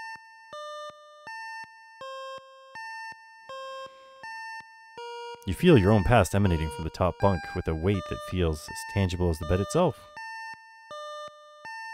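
Simple electronic game music plays in short beeping notes.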